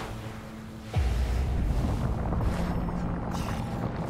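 A deep rumbling boom hits and swells.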